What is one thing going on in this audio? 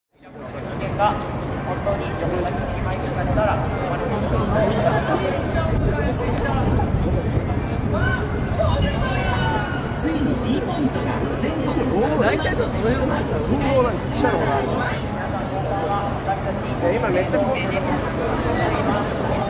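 Many footsteps shuffle across pavement.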